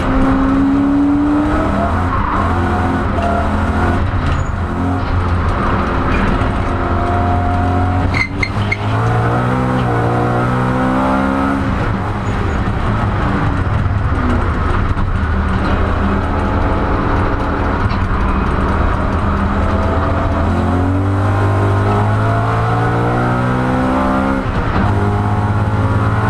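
Gears shift with quick clunks.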